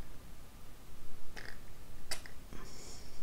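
A paintbrush taps and scrapes against a ceramic dish.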